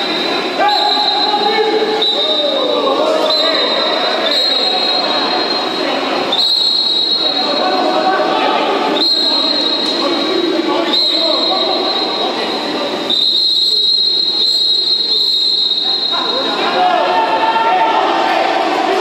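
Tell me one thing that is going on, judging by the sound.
Men shout to each other across an echoing pool hall.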